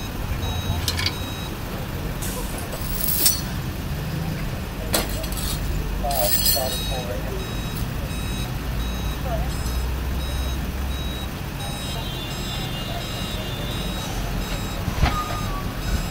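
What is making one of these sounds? Metal chains clank against each other.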